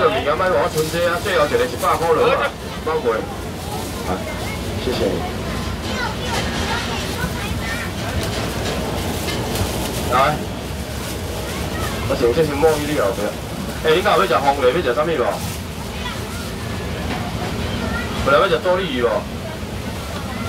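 A young man calls out loudly to passers-by close by.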